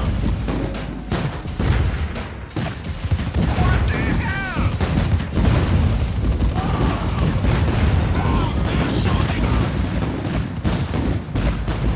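Gunfire crackles and explosions boom and rumble.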